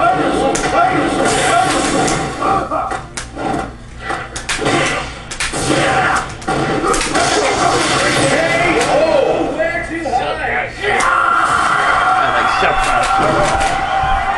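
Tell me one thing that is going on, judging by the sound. Music from a video game plays through a television speaker.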